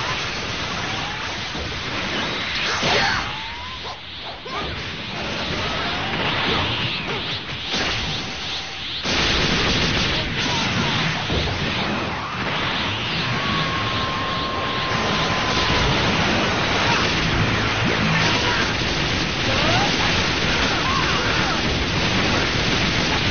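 Beam attacks whoosh and hum loudly.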